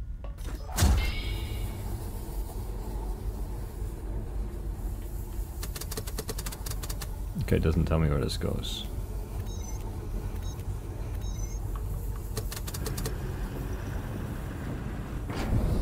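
An energy beam hums and crackles.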